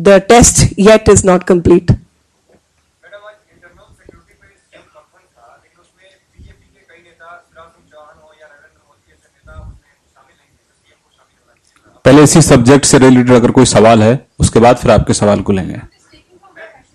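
A woman speaks firmly into a microphone.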